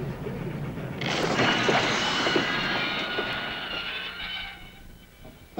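A steam locomotive hisses loudly, releasing steam.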